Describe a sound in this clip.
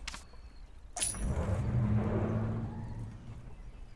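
Coins jingle brightly in a game.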